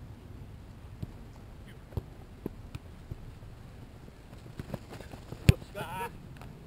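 A football is kicked with sharp thuds.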